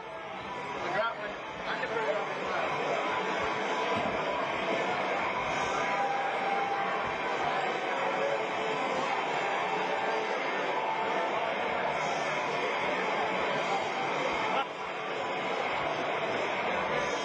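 A rock band plays loudly in an echoing hall.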